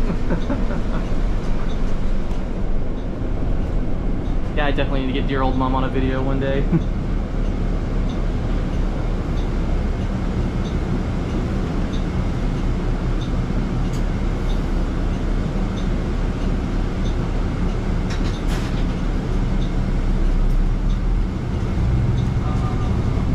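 Tyres roll over the road with a steady low roar.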